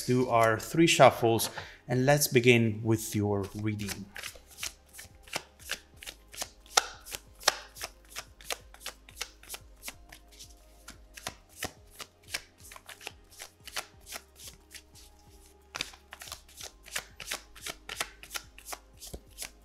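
Playing cards riffle and slap softly as a deck is shuffled.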